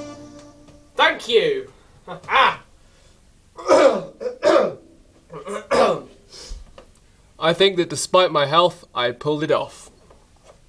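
A young man speaks close by, with animation.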